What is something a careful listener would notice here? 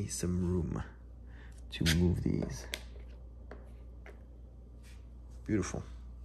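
A hard plastic card case is set down on a table with a light tap.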